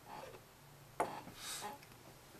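A metal knife knocks lightly against a table.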